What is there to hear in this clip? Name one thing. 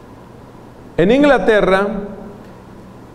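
A man speaks briefly into a microphone in an echoing room.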